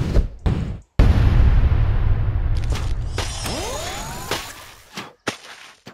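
A game sound effect whooshes with a frosty, magical shimmer.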